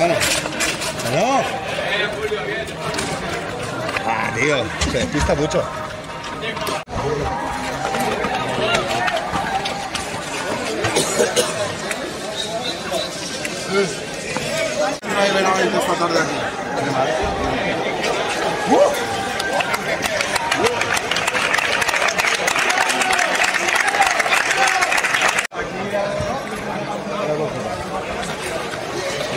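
A crowd of young men shouts and chatters outdoors nearby.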